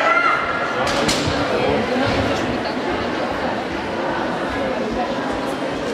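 Loud pop music plays through loudspeakers in a large echoing hall.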